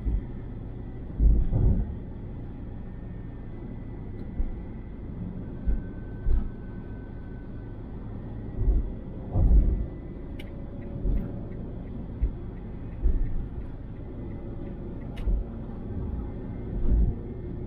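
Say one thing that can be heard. Tyres roll over the road with a low rumble and occasional thumps over joints.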